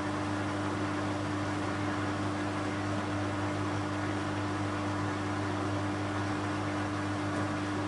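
Wet laundry tumbles and sloshes inside a washing machine.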